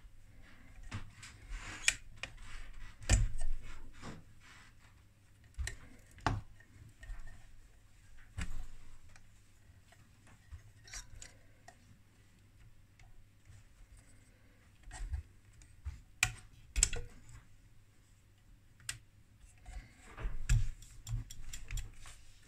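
Plastic parts rattle and tap against a metal case.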